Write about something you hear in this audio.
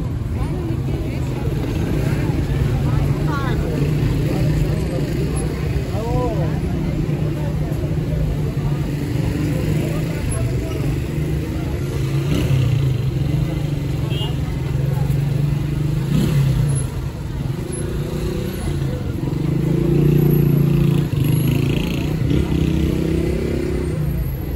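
Nearby men and women chatter.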